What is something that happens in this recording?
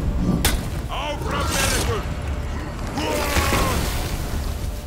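Metal blades clash and ring sharply.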